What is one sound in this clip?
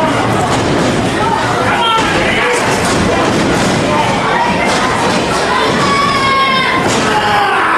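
A crowd cheers and chatters loudly in an echoing hall.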